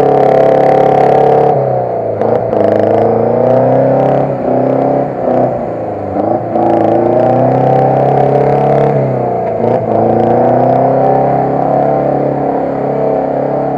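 Muddy water splashes and sprays around spinning tyres.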